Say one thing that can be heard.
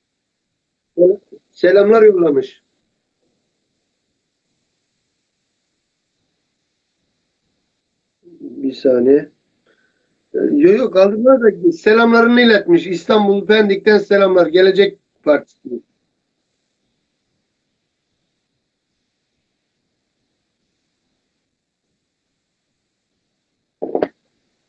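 A middle-aged man speaks over an online call in bursts with pauses.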